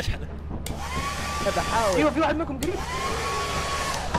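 A hair dryer whirs with a steady hum.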